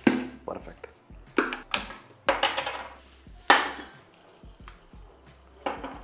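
Milk pours into a metal pot.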